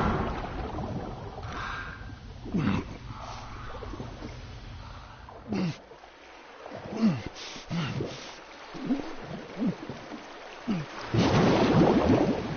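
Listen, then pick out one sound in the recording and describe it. A swimmer splashes through water with steady strokes.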